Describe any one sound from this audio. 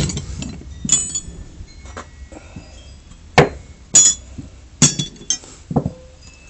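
Metal wrenches clank and clink against each other.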